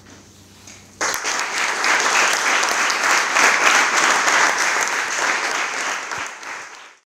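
An audience applauds loudly in an echoing room.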